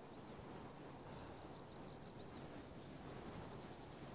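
Leafy branches rustle as someone pushes through a bush.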